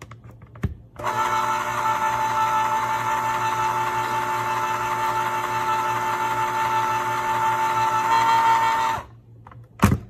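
An electric can opener motor whirs steadily as a can turns.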